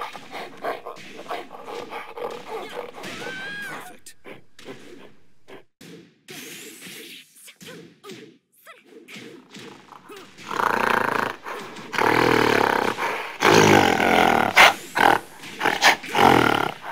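Punches and kicks land with sharp thuds and whooshes.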